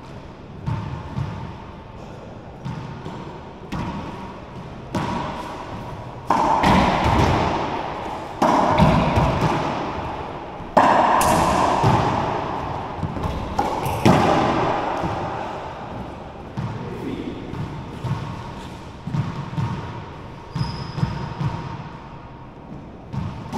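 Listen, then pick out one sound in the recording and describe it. Sneakers squeak and shuffle on a wooden floor.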